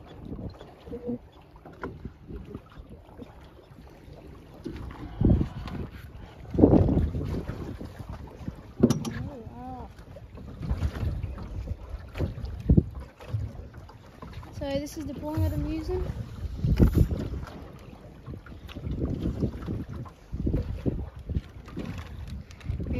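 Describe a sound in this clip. Wind gusts and rumbles across open water.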